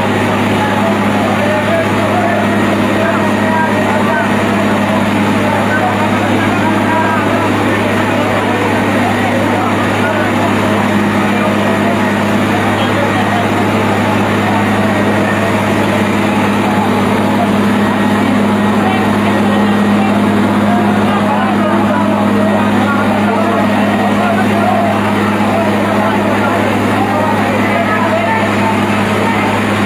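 Men shout and call out to one another nearby.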